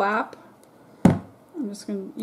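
A plastic bottle is set down on a wooden table with a knock.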